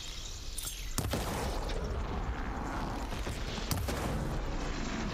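Electricity crackles and sparks.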